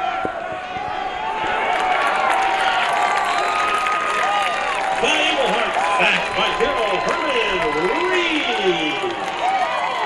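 A crowd cheers loudly in an open-air stadium.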